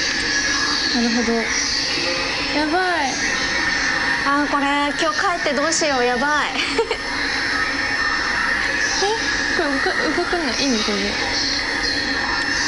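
A young woman talks quietly.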